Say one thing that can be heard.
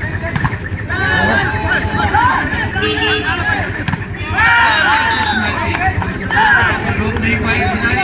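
Spectators cheer loudly.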